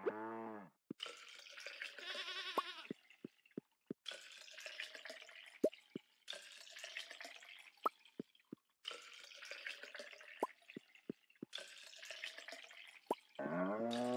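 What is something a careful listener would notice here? Milk squirts rhythmically into a pail.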